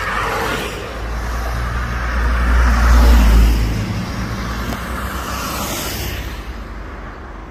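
Cars drive past close by on a street, their tyres hissing on the road.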